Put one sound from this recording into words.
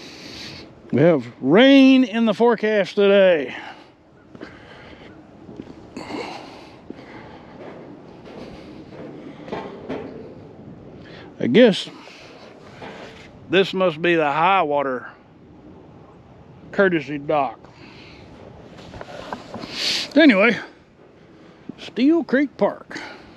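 An elderly man speaks with animation close to the microphone.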